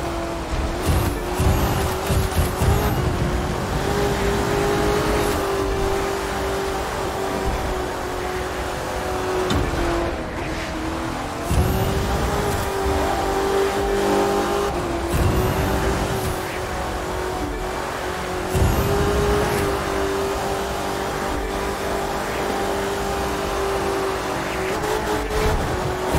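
Tyres hiss over an icy road.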